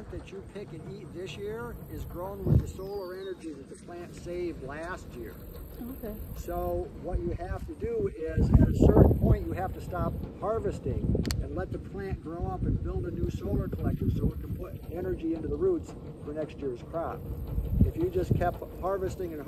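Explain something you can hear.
A man talks outdoors at a short distance, explaining with animation.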